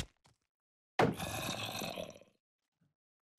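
A zombie groans close by.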